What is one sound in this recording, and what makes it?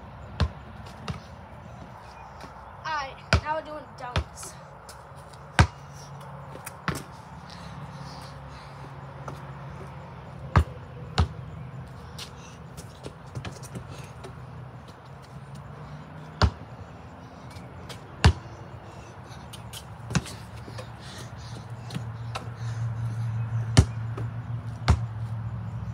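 A basketball bounces sharply on pavement outdoors.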